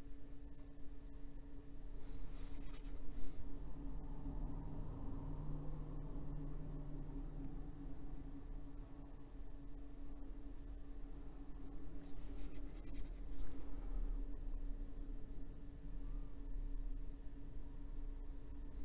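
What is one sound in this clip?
A wet brush brushes softly across paper.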